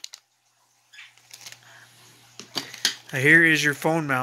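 A plastic bag crinkles and rustles as hands handle it.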